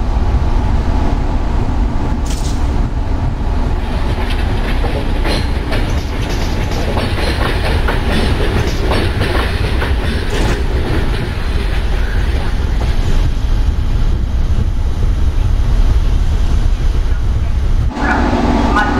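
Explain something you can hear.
A train rumbles along, its wheels clattering over the rail joints.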